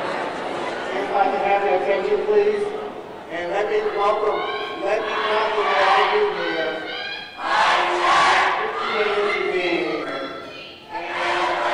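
A woman speaks with animation into a microphone in a large hall.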